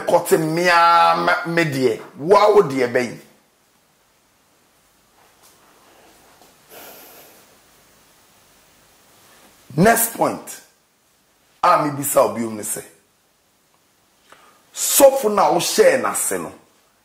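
A man speaks with animation into a close microphone, pausing between phrases.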